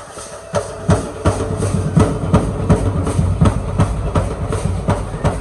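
A drum beats steadily nearby.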